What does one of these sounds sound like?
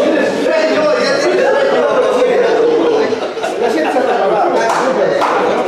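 Several men talk and laugh loudly over one another nearby.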